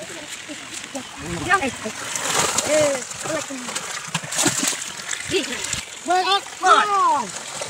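Men talk with animation nearby.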